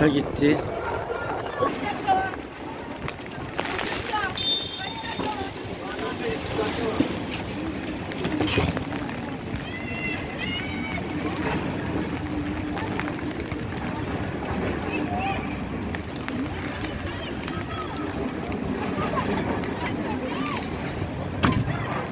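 Young men shout to each other across an open outdoor field.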